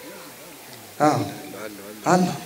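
A man chants loudly through a loudspeaker outdoors.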